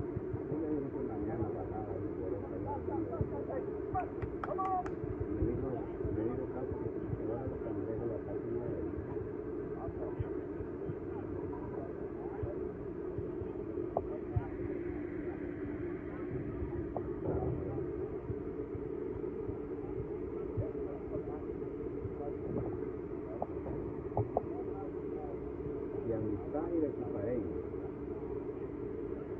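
Young players chatter and call out at a distance outdoors.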